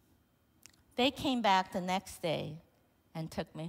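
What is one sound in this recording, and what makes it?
A woman speaks calmly into a microphone, heard through loudspeakers in a large room.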